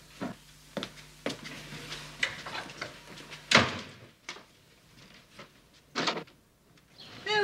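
Footsteps sound on a wooden floor.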